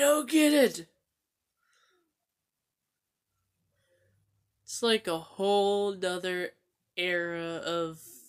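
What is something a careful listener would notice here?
A young man sings loudly and close by, in long held notes.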